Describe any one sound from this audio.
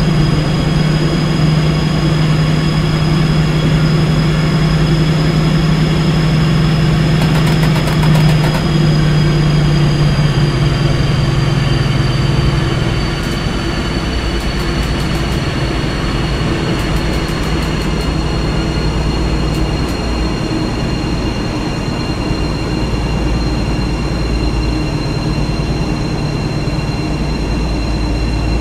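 An electric train engine hums steadily with a high whine that slowly falls as the train slows.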